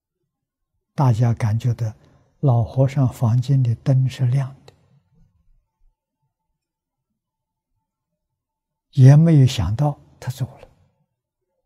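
An elderly man speaks calmly and warmly into a close microphone, pausing between phrases.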